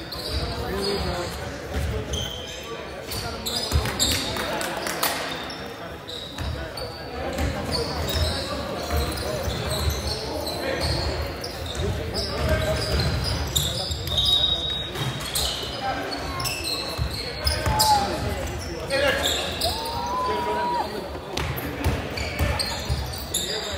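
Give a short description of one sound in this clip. Sneakers squeak sharply on a hardwood court in a large echoing gym.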